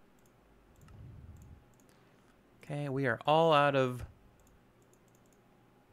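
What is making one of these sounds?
Soft menu clicks sound now and then in a game.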